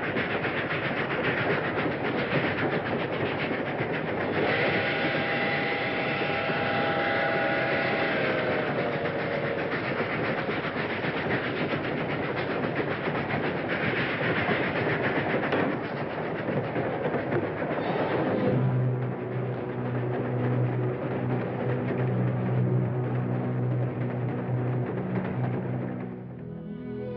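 A freight train rumbles and clatters along the tracks.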